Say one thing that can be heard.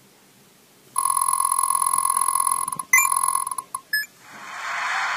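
A game's tally of points rings out in rapid electronic chimes.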